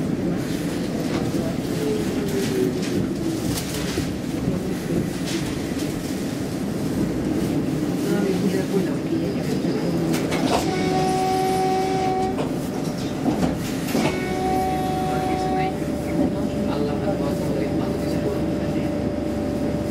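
A bus engine rumbles and hums steadily, heard from inside the bus.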